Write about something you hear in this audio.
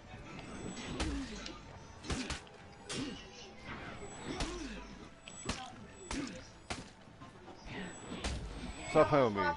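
Metal swords clash and clang.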